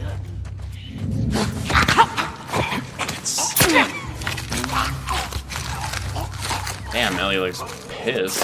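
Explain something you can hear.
A zombie snarls and shrieks.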